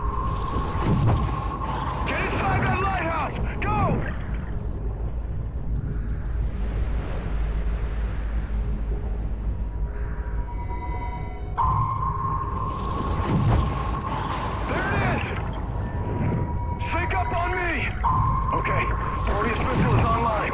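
Air bubbles gurgle and burble underwater.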